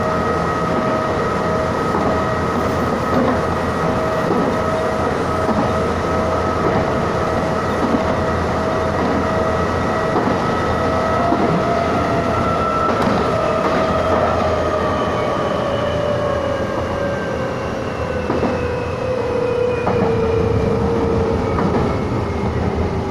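A train's motor whines, its pitch slowly falling as it slows.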